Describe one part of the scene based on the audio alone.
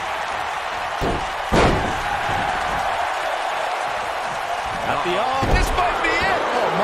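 Bodies thud heavily onto a wrestling ring mat.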